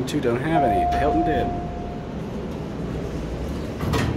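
Elevator doors slide open with a low rumble.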